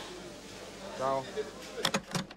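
A young man speaks briefly into a phone.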